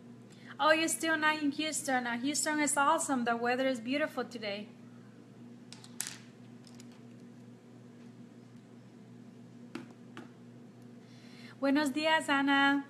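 A woman speaks calmly and close to a microphone, pausing in between.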